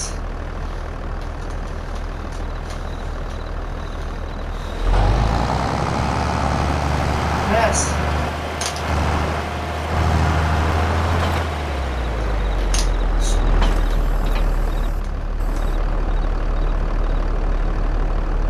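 A tractor engine hums steadily at idle.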